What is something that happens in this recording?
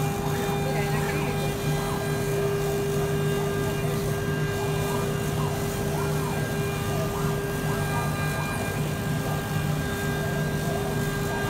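A laser cutting machine hums steadily as its cutting head glides back and forth.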